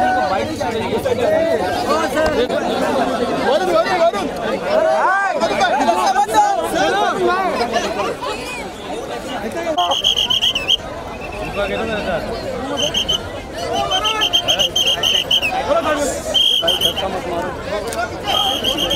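A large crowd of men and women talks and shouts loudly close by.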